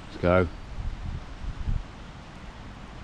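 A man gulps a drink from a can.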